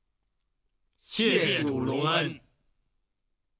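Two men speak together loudly in unison, close by.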